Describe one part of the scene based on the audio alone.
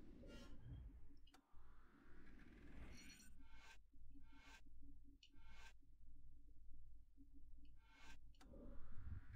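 Short electronic menu blips sound in a video game.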